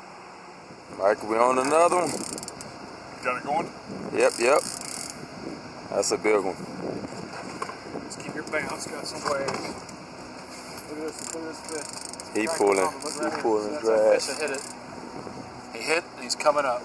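An older man talks excitedly close by.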